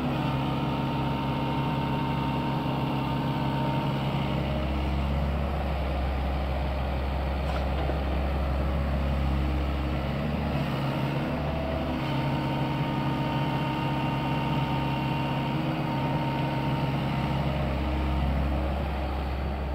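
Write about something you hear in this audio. An excavator bucket scrapes and scoops soil.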